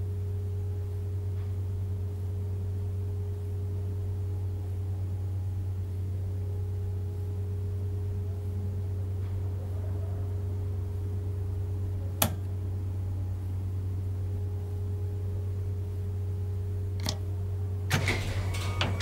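An electric tram hums steadily while standing still.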